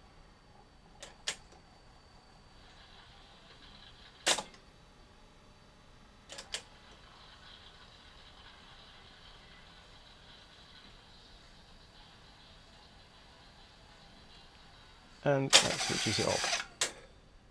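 Buttons on a cassette deck click sharply as they are pressed.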